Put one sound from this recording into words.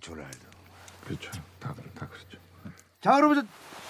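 A man speaks quietly and calmly, close by.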